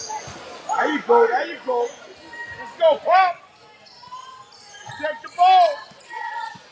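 Spectators shout and cheer in an echoing gym.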